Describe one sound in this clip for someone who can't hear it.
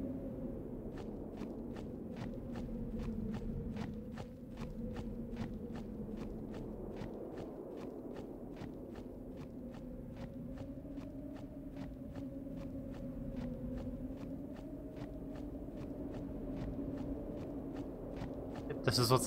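Quick, even footsteps patter as a figure runs.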